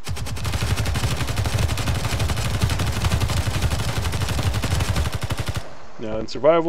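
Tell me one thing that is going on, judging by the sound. A rapid burst of automatic gunfire rattles loudly.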